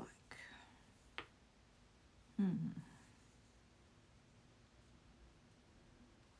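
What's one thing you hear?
Fingers rub and press softly against fabric.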